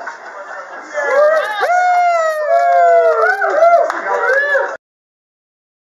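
A group of young men cheer and whoop loudly nearby.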